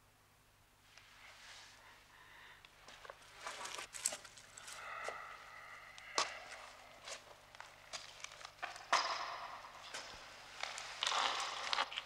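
Footsteps crunch on rubble.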